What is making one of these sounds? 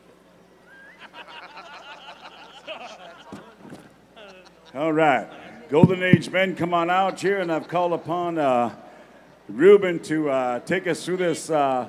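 A man speaks loudly through a microphone over loudspeakers in a large echoing hall.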